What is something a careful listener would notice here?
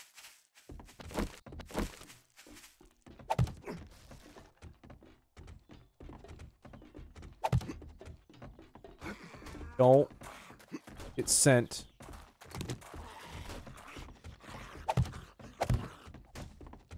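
Wooden blocks thud into place with short knocks.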